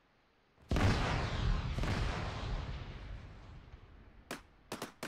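A loud explosion booms and rumbles away slowly.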